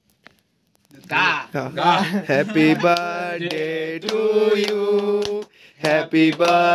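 A group of people sings together.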